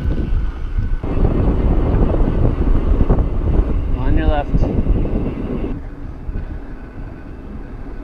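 Bicycle tyres hum over smooth pavement.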